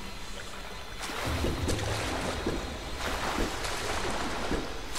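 Footsteps splash through shallow liquid.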